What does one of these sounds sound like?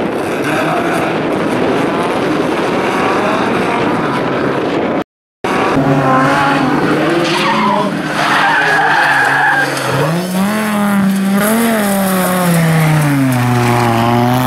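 Tyres skid and scrape across loose gravel.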